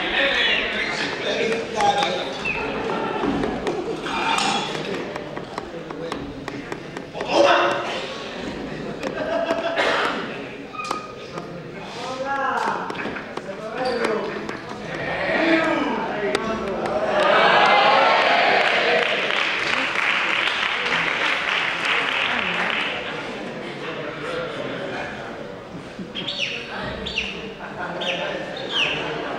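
Men talk and call out loudly in a large echoing hall.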